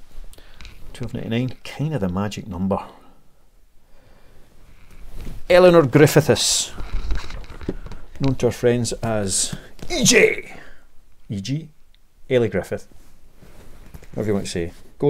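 A middle-aged man talks calmly and close up.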